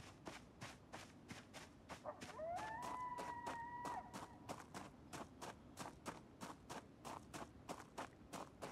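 Quick footsteps run steadily along a hard road.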